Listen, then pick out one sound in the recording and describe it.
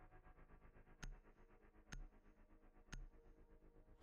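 A countdown timer beeps three times.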